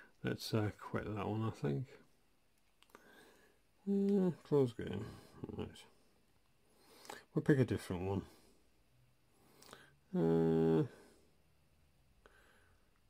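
Buttons click softly on a handheld game console.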